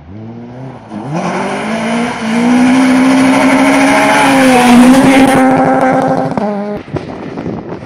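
A rally car races past at full throttle on a gravel road.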